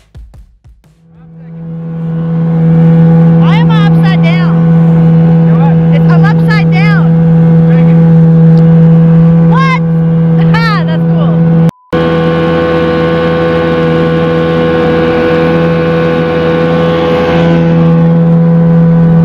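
A boat's outboard motor drones steadily.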